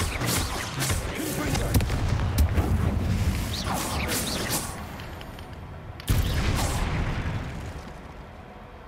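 Magic spells burst and crackle in quick bursts.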